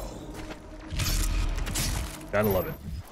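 A creature's flesh tears with a wet, squelching rip.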